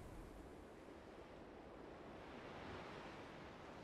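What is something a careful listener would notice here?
Small waves wash gently onto a shore.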